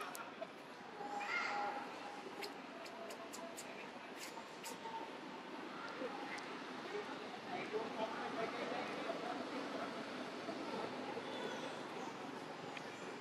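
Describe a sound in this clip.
A young monkey squeaks softly.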